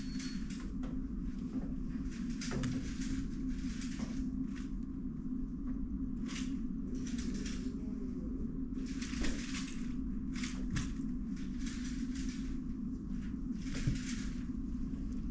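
Plastic puzzle cube pieces click and rattle as they are turned quickly by hand.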